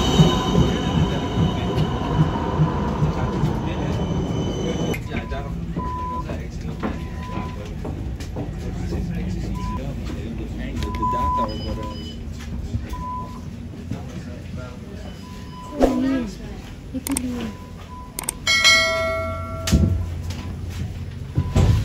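A tram rumbles and rattles steadily.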